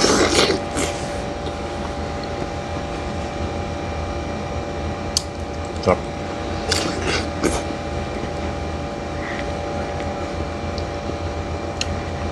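A man chews fruit with wet smacking.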